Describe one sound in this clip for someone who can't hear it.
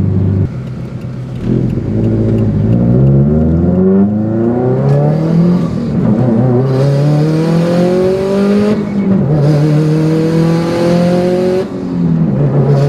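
A car engine revs up repeatedly as the car accelerates through the gears.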